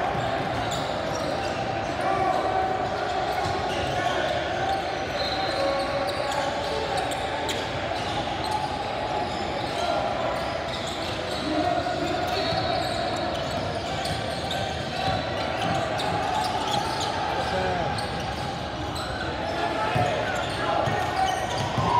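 Sneakers squeak on a wooden court in a large echoing gym.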